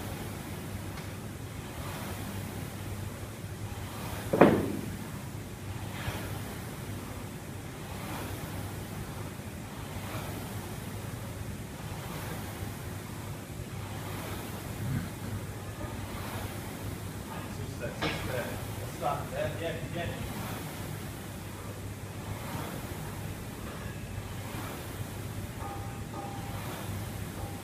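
A rowing machine's flywheel whooshes in a steady rhythm with each stroke.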